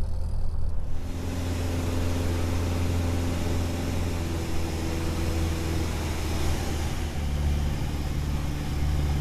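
A small plane's engine drones steadily in flight.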